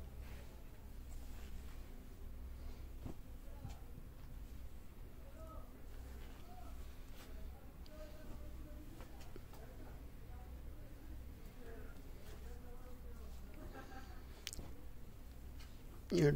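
Cloth rustles softly as fabric pieces are moved and laid down.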